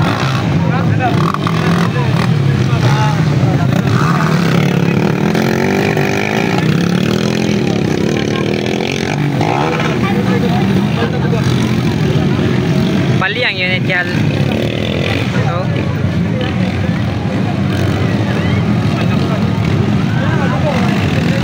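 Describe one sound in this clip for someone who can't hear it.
A crowd chatters and shouts in the distance.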